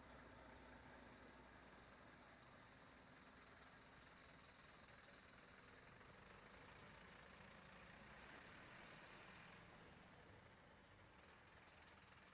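A diesel box truck idles close by.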